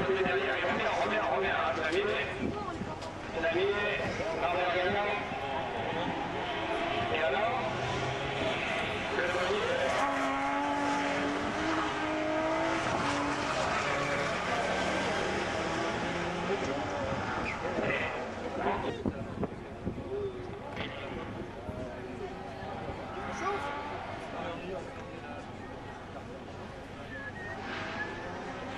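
A crowd of spectators murmurs and chatters nearby.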